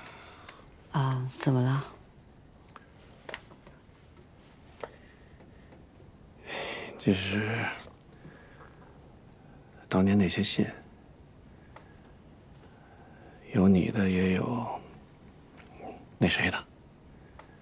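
A middle-aged man speaks quietly and hesitantly, close by.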